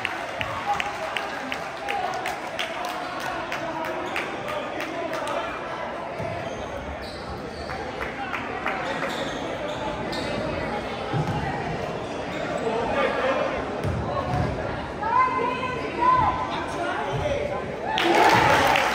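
A crowd of spectators chatters and cheers nearby.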